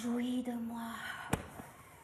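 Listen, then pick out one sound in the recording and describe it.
A young woman gasps loudly.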